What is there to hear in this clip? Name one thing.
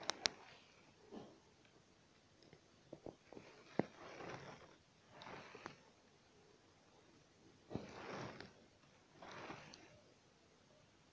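Thread is pulled through fabric with soft, repeated swishing rasps.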